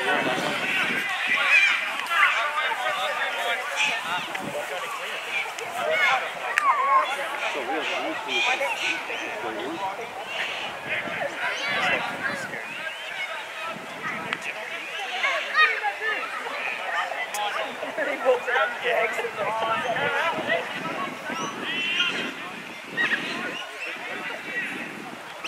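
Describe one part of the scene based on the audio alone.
Young men shout and call out to one another across an open field outdoors.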